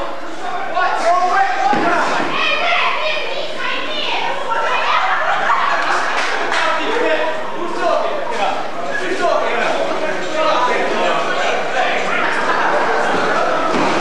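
Bodies thud and slap on a wrestling mat.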